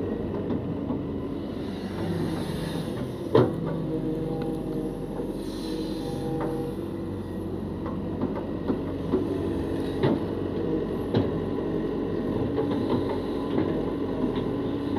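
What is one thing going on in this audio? An excavator engine rumbles steadily close by.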